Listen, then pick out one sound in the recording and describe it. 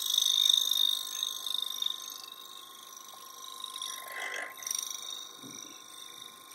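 A gouge scrapes and hisses against spinning wood.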